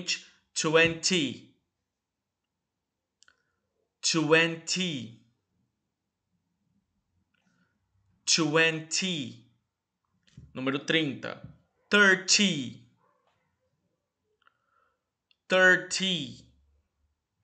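A young man speaks clearly into a close microphone, reading out short words with pauses between them.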